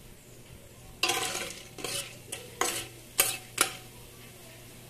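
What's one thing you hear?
A spoon scrapes and stirs kernels in a metal pot.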